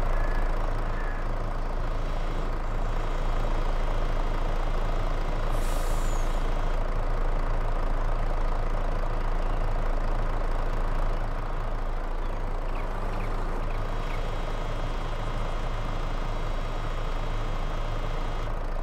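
A crane's hydraulic motor whines as it lifts a load.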